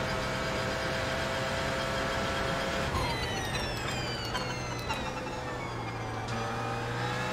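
A racing car engine roars at high revs, its pitch sliding down as the gears shift down.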